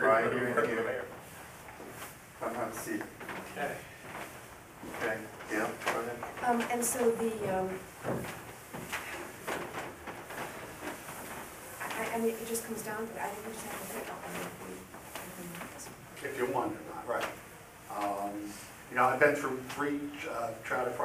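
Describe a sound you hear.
A man speaks calmly across a table.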